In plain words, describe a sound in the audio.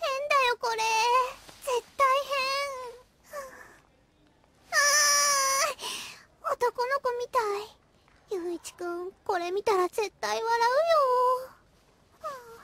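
A young girl speaks to herself in a whiny, fretful voice.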